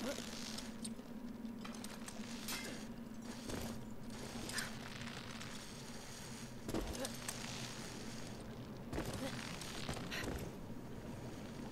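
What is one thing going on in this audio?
A rope creaks and rubs as a climber slides down it.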